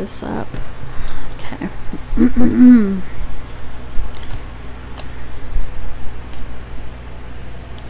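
Cards slide and rustle across a table.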